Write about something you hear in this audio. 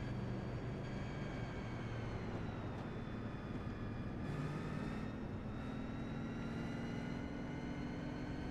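A racing car engine roars steadily at high speed, its pitch shifting slightly.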